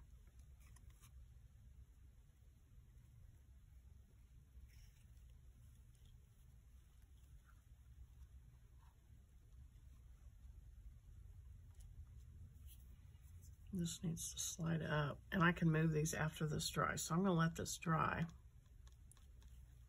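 Paper cards rustle softly as hands handle them.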